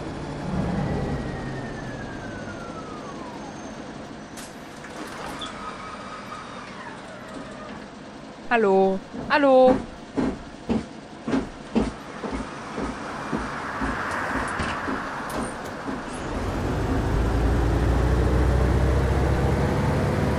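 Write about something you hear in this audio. A bus engine rumbles and revs as the bus drives.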